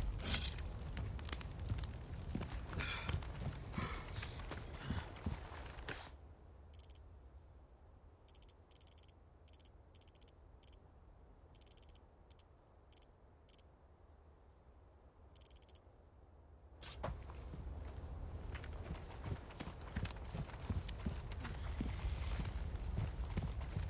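Footsteps crunch over dirt and gravel.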